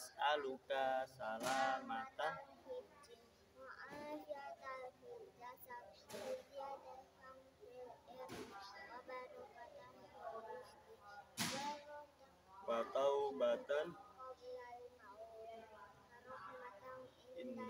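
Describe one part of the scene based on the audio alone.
A young boy speaks calmly and close by.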